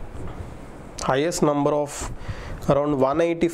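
A man speaks clearly into a close microphone, explaining in a steady voice.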